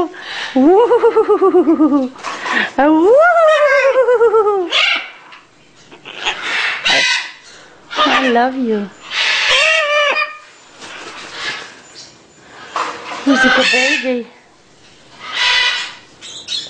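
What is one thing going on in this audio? A parrot squawks and screeches loudly, close by.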